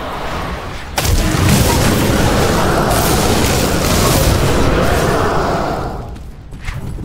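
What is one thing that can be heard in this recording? Crackling electric magic bursts and roars.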